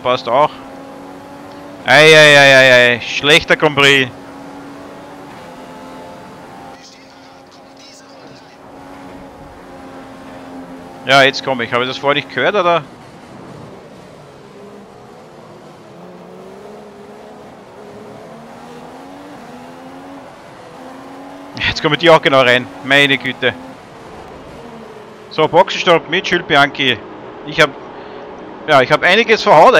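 A racing car engine whines steadily, its pitch rising and falling with the gear changes.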